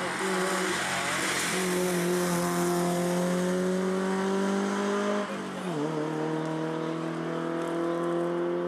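A rally car engine revs hard as the car drives away.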